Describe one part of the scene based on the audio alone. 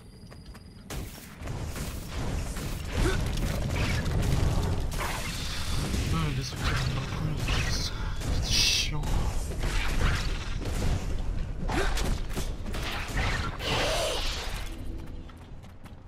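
Blows and spell effects clash in a fight.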